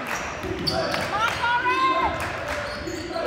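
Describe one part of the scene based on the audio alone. Sneakers squeak sharply on the wooden court.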